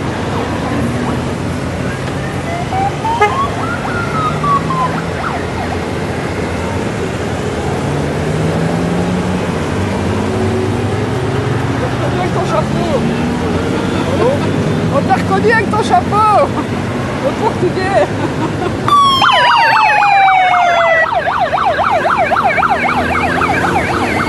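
A long line of motorcycles rumbles past one after another, engines revving.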